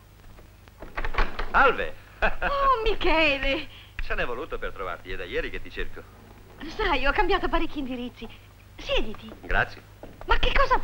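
A young woman answers with animation.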